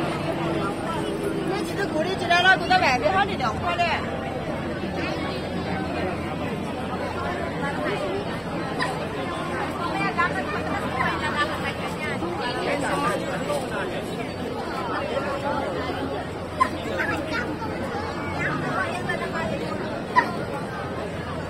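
A dense outdoor crowd of men and women chatters all around.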